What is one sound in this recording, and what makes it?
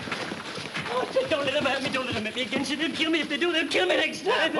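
A man speaks loudly and firmly near the end.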